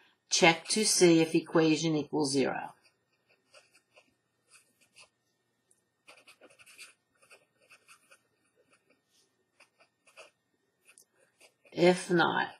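A marker squeaks and scratches softly on paper.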